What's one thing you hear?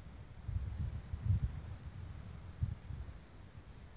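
A cricket bat strikes a ball.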